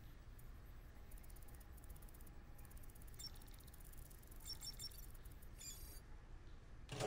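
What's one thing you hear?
Electronic beeps and chirps sound from a handheld device.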